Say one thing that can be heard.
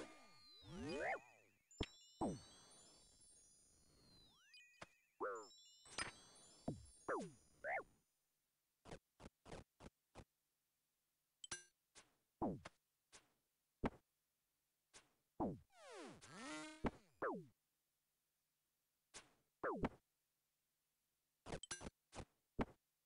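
Video game spell and hit effects zap, chime and thud in short bursts.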